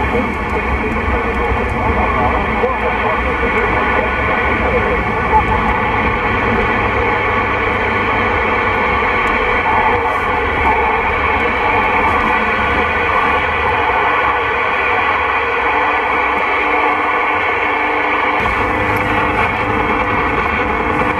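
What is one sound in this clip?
A car drives on a wet road.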